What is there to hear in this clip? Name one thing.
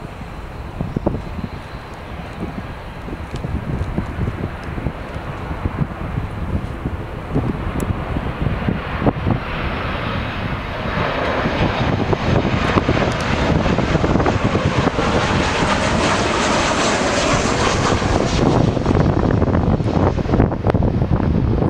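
A Boeing 737 jet airliner roars louder as it descends on approach and passes low overhead.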